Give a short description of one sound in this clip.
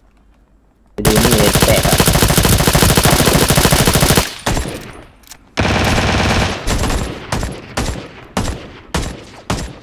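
A rifle fires in rapid bursts nearby.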